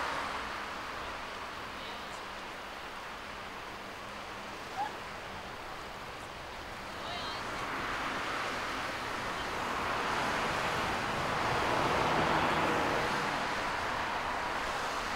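Waves wash over rocks along the shore in a steady rush.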